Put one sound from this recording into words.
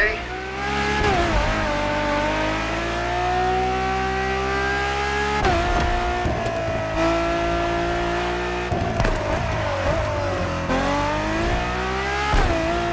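A sports car engine roars at high revs, rising and dropping in pitch as the gears shift.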